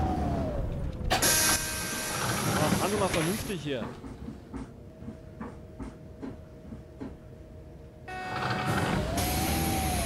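Bus doors hiss open and shut at a stop.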